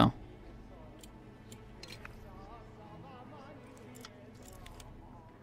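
Small metal clicks come from a lock being picked.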